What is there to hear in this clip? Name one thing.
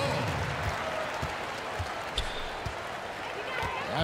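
A basketball bounces on a wooden floor in quick dribbles.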